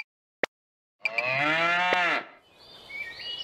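A cow moos.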